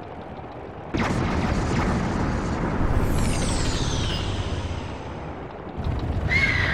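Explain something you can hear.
Wind roars steadily.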